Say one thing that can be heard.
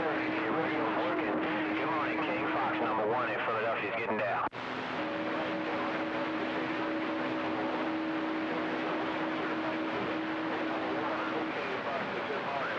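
Static hisses steadily from a radio receiver, cutting out for a moment.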